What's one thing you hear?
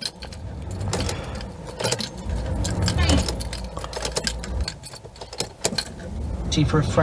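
A car key clicks as it turns in the ignition.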